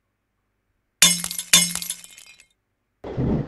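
A bright chime rings out with a short jingle.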